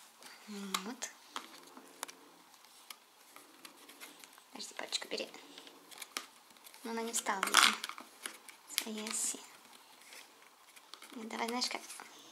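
Fingers tap and rustle on a cardboard book.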